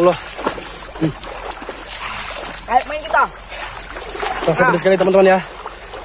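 Water splashes as boys move in a shallow river.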